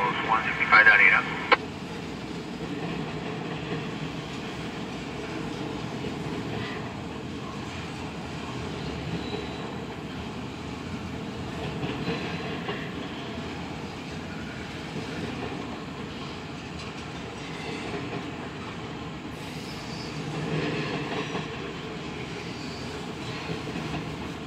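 A freight train rumbles past steadily, with wheels clattering on the rails.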